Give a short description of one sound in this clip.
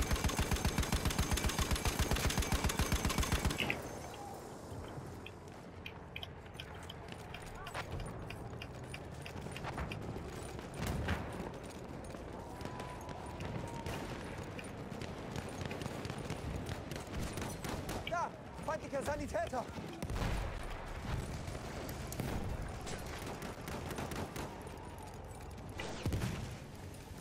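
A machine gun fires rapid, loud bursts.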